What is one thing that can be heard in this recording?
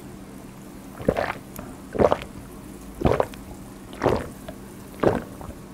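A young man gulps a drink loudly.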